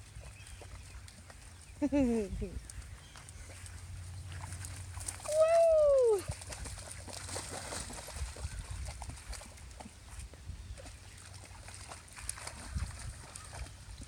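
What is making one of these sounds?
Two dogs splash through shallow puddles in long grass.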